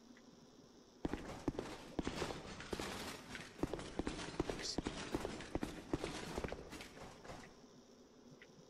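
Footsteps in armor fall on a stone floor.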